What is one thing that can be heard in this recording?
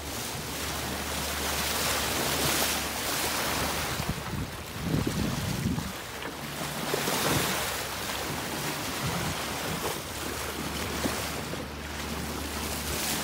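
Wind blows hard across a microphone outdoors.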